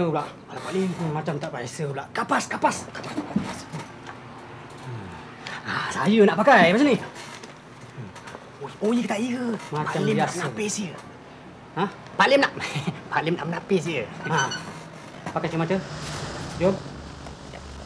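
A young man answers, talking back with animation close by.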